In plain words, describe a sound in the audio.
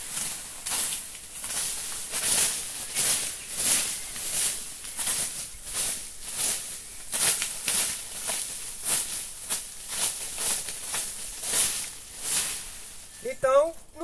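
A tool scrapes and rustles through dry leaves in quick, even strokes.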